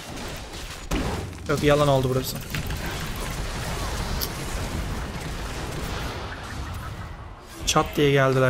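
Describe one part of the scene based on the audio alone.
Spell effects and clashing blows from a video game crackle and whoosh.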